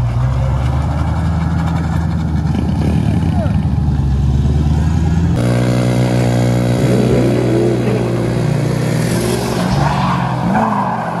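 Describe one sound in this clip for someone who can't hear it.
A turbocharged V8 pickup engine revs hard.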